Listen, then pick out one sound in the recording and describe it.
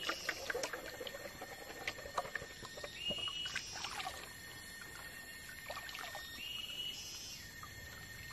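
Water sloshes and splashes in a metal pan.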